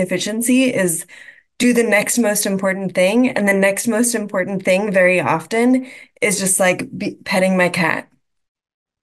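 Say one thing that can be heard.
A young woman speaks with animation through an online call.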